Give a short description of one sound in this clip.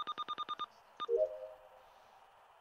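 A short electronic chime sounds for a completed task.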